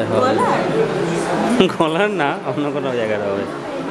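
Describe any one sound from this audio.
A crowd of people talks and chatters nearby.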